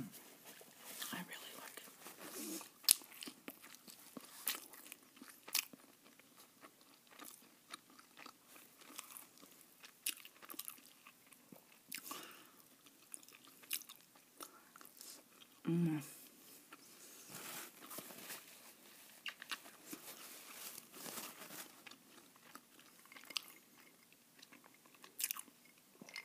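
A person chews food wetly and smacks up close.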